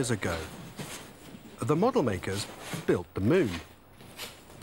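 A man speaks up close with animation.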